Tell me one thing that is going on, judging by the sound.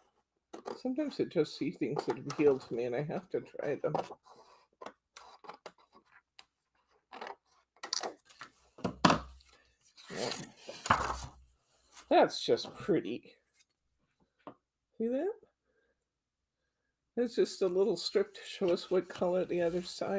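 Paper rustles and slides on a table.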